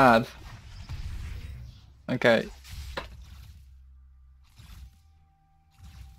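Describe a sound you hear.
Game spell effects whoosh and burst during a fight.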